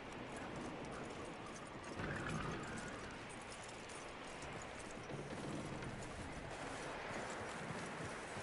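Wind blows steadily outdoors in a snowstorm.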